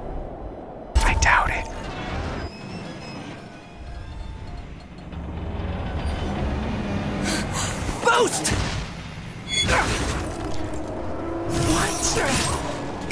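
Deep explosions rumble and boom.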